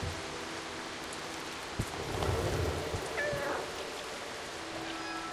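Small paws patter softly on grass.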